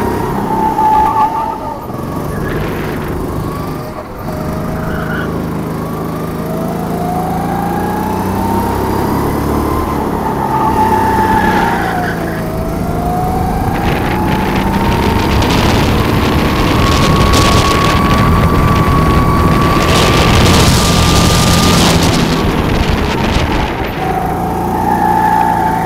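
A kart engine buzzes loudly close by, its pitch rising and falling with speed.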